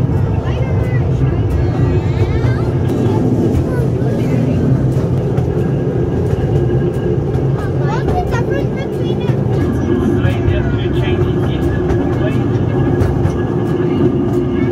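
A small open train rumbles and rattles along a track.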